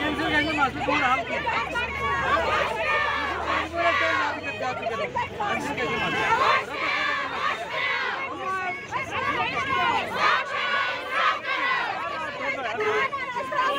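Several women shout and plead loudly at close range.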